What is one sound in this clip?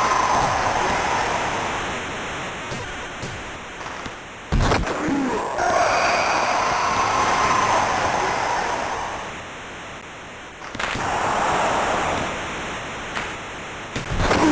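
A crowd roars in a large arena, swelling and fading.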